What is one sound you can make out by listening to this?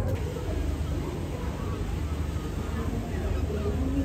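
Water splashes in a boat's wake.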